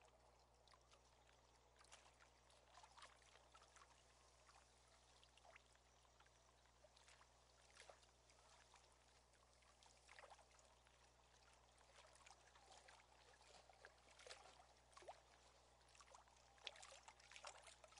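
A fishing reel clicks as it winds in line.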